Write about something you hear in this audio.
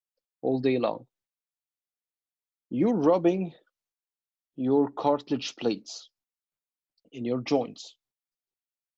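A man speaks calmly into a microphone, in short phrases.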